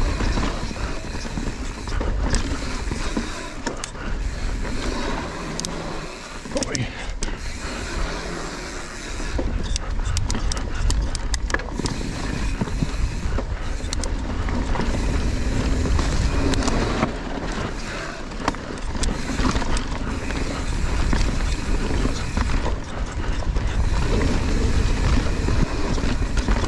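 A bicycle rattles and clatters over bumps.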